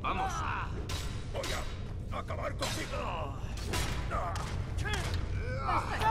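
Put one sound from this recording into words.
Steel blades clash.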